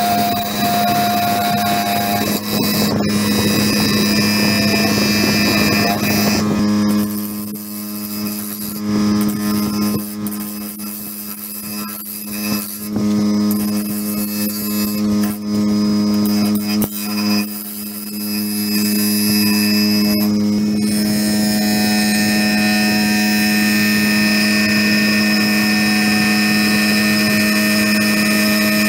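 A gouge scrapes and cuts into spinning wood.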